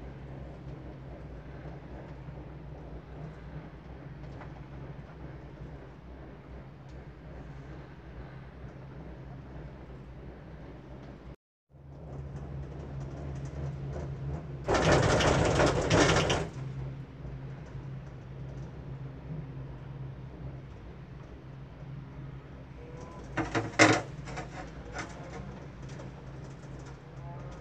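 A gondola cabin hums along its cable.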